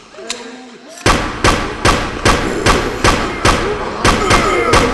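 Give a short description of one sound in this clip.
A pistol fires shot after shot in quick, regular bursts.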